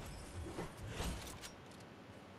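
A crate creaks open with a wooden knock.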